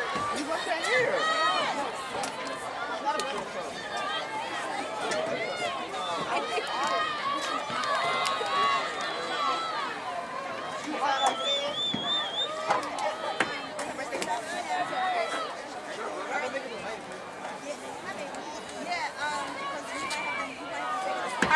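A crowd of spectators cheers and shouts encouragement outdoors.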